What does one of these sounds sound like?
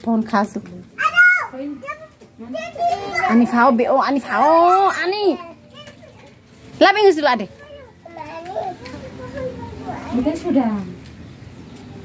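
Young children talk and call out loudly close by.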